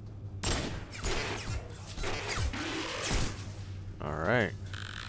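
Electric sparks crackle and fizz.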